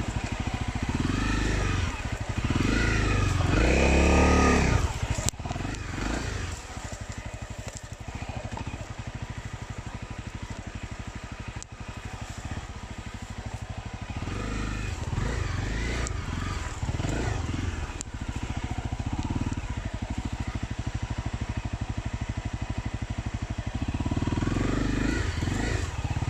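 A dirt bike engine chugs steadily close by.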